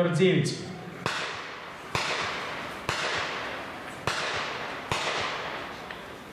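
A tank cannon fires repeated loud shots that echo and roll away across open ground.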